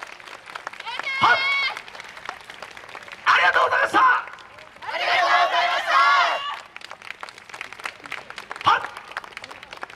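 A group of young women shout and chant together in loud bursts outdoors.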